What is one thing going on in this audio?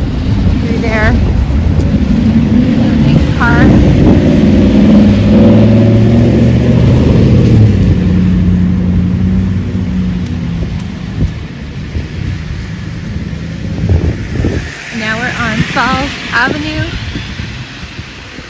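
Cars drive past on a wet road, tyres hissing.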